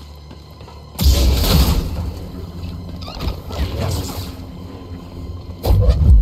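A blade hums and crackles with bursts of sparks.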